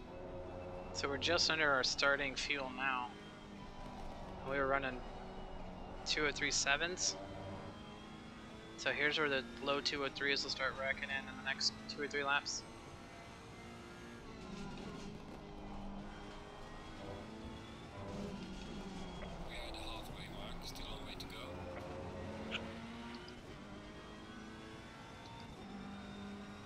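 A racing car engine drones and revs steadily.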